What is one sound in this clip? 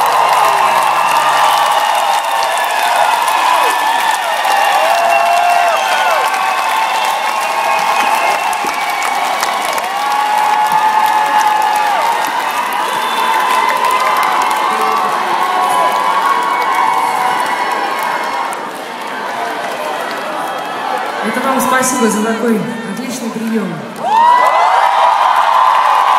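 A large crowd screams and cheers loudly.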